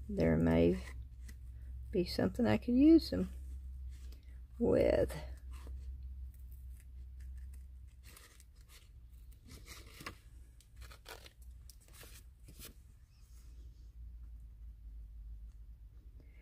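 Scissors snip through paper with soft, crisp cuts.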